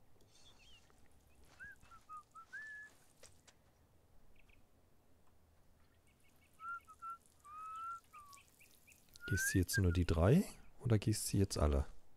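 Water trickles from a watering can onto soil.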